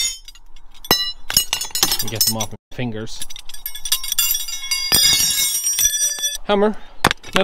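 Small metal parts clink and ring together.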